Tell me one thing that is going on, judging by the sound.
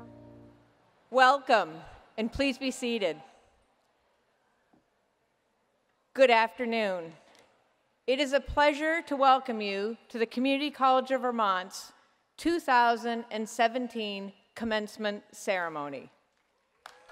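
An elderly woman speaks calmly into a microphone over a loudspeaker.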